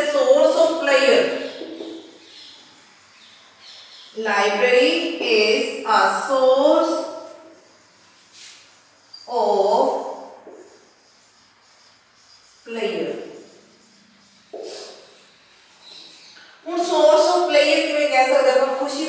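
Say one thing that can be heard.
A woman speaks calmly and clearly into a close microphone, pausing often.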